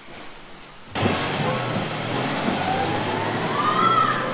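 A car engine runs as a car pulls away.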